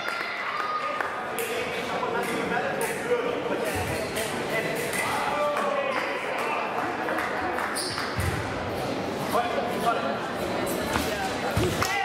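A crowd murmurs and talks in a large echoing hall.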